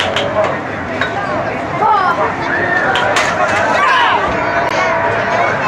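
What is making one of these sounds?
Children squeal and shout excitedly.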